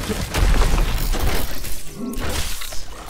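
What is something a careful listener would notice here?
A deep rumble of debris shakes and settles.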